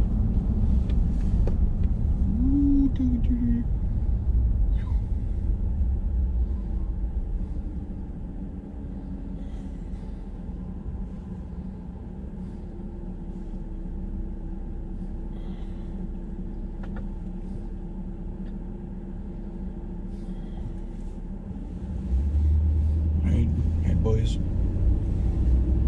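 Tyres rumble on a gravel road.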